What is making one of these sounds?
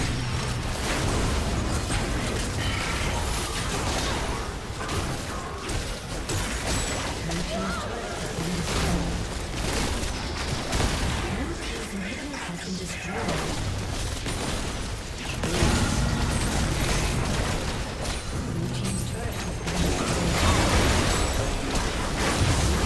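Game spell effects and impacts crash and clatter in a fast battle.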